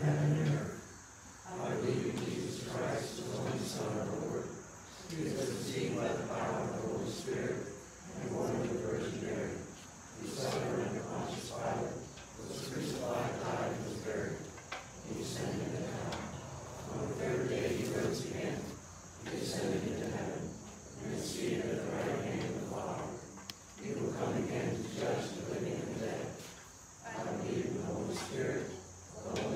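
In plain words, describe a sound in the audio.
An elderly woman reads aloud calmly, in phrases with short pauses.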